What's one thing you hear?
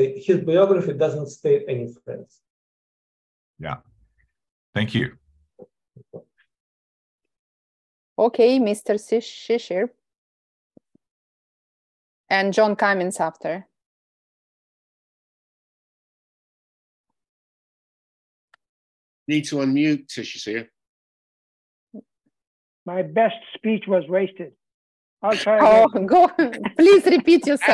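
Several men speak by turns over an online call, with pauses between them.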